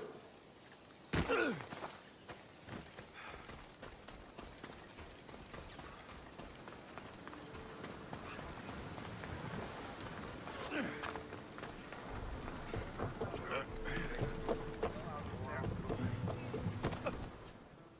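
Footsteps crunch on sand and grass.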